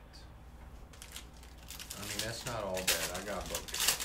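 A foil card pack wrapper crinkles as it is torn open.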